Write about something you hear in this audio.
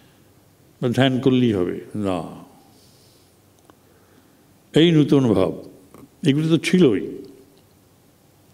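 An elderly man speaks calmly into a microphone in short phrases.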